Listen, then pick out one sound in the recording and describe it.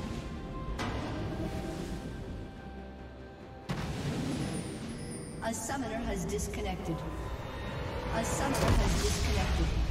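Fantasy battle sound effects clash and burst.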